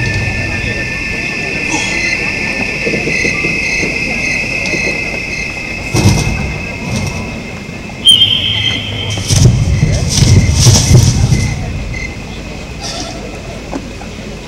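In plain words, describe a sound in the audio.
Fireworks boom and crackle in the distance.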